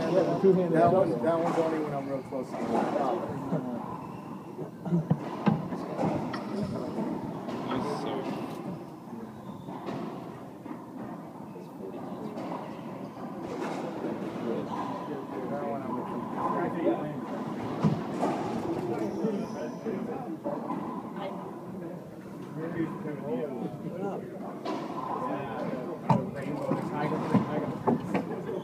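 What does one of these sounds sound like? A racquetball smacks against the walls of an echoing court, again and again.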